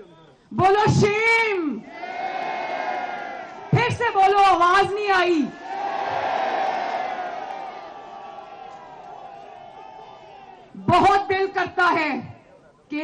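A young woman speaks forcefully into a microphone over loudspeakers, outdoors.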